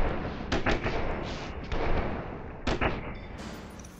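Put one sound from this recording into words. Gunshots fire in short sharp bursts.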